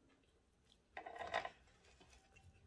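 Fried food crackles as it is pulled apart by hand.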